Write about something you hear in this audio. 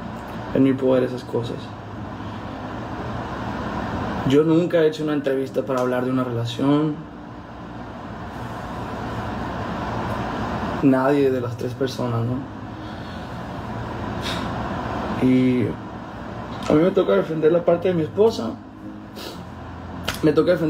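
A young man speaks calmly and close by, in bursts with pauses.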